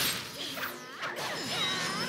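Lightning bolts crack down.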